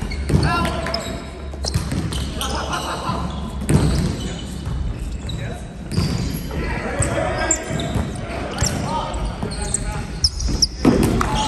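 Young men call out to each other during a volleyball game in a large echoing hall.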